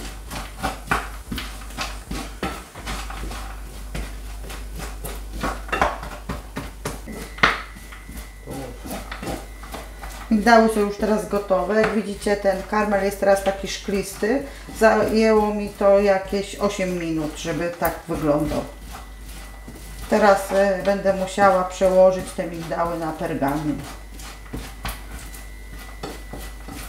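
A wooden spatula scrapes and clatters against a metal pan.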